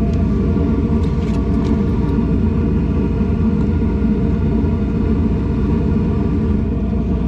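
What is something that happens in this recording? Tools rattle and click inside a bag.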